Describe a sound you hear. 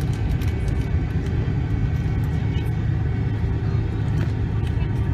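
Jet engines roar steadily inside an airplane cabin as it taxis.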